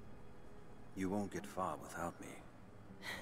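A man speaks in a low, calm voice.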